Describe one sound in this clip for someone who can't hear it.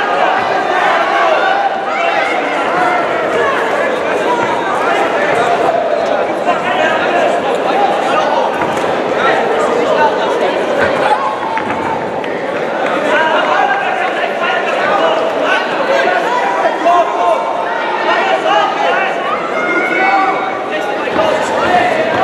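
A crowd in a large echoing hall cheers and shouts throughout.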